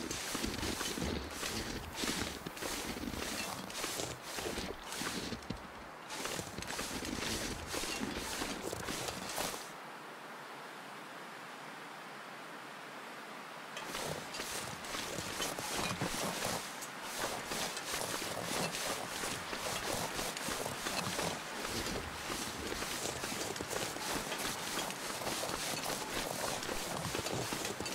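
Footsteps crunch steadily through deep snow.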